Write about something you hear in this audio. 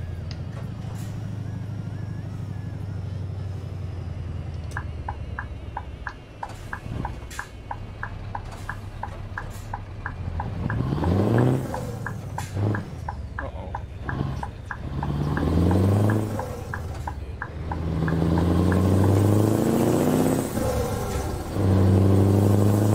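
A truck engine rumbles and revs up repeatedly through the gears.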